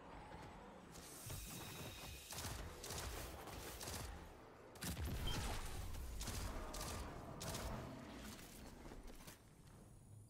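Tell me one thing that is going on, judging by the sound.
Rapid gunfire rattles and booms in bursts.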